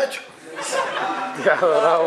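A man seated nearby laughs.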